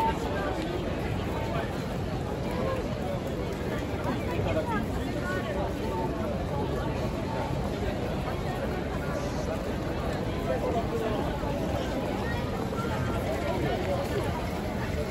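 Many footsteps shuffle across pavement.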